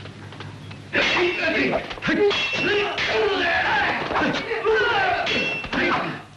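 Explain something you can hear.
Swords clash and strike with sharp blows.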